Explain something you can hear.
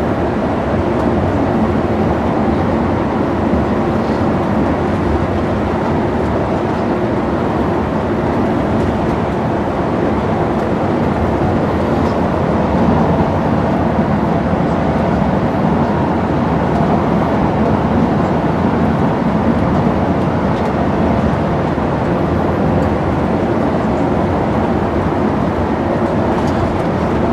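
A bus engine drones steadily from inside the cabin.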